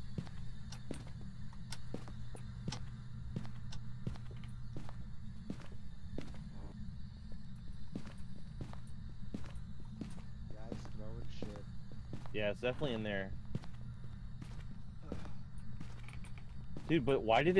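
Footsteps walk steadily across a floor indoors.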